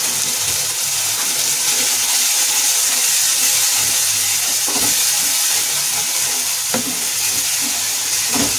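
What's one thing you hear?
A thick sauce sizzles in a pan.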